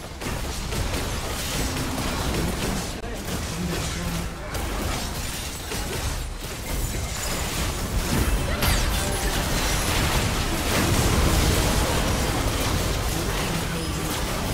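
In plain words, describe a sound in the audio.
Spell blasts, explosions and weapon hits from a video game fight crackle and boom without pause.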